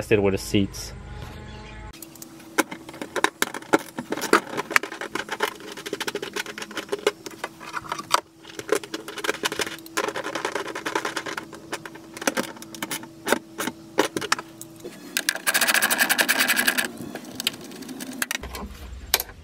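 Wires rustle and plastic connectors click as they are handled.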